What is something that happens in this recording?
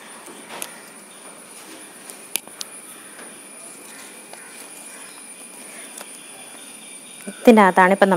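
Paper rustles as it is handled and unfolded.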